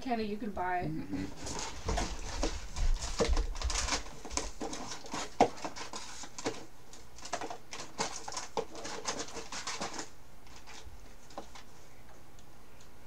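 Cardboard rustles and crinkles as a box is opened and unpacked.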